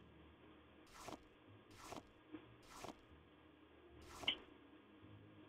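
Plants are picked with short, quick rustles.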